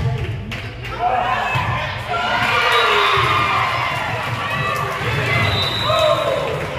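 A crowd of spectators cheers loudly in an echoing gym.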